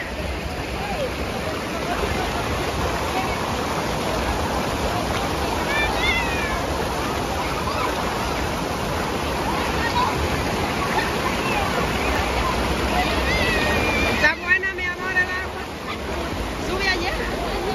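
A crowd of people chatters and calls out in the distance, outdoors.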